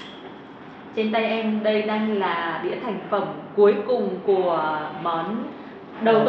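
A young woman speaks clearly into a microphone.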